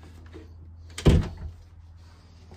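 A door latch clicks as a door is pushed open.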